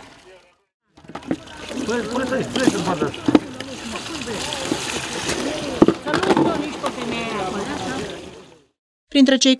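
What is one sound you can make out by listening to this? Water gushes from a hose into a plastic bucket.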